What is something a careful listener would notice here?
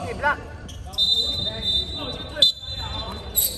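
A referee blows a whistle with a long shrill blast.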